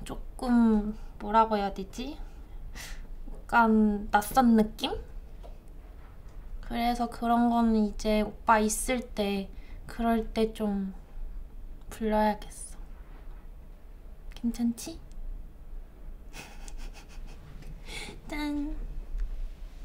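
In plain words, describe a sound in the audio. A young woman talks calmly and cheerfully close by.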